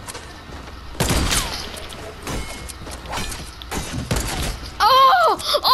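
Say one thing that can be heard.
Rapid gunshots crack in quick succession.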